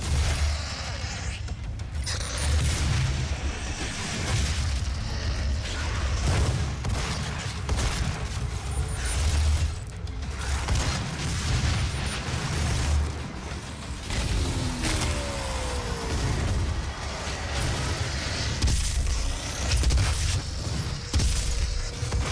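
Deep, pounding music plays throughout.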